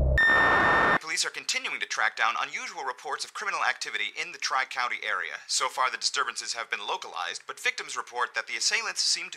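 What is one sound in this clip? A man speaks calmly and clearly into a microphone, like a news presenter.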